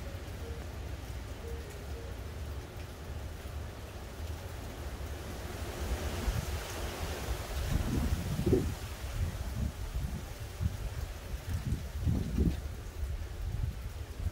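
Wind blows in gusts outdoors, rustling tree leaves.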